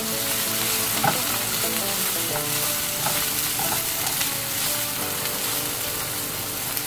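Chopped onions sizzle softly in a hot pan.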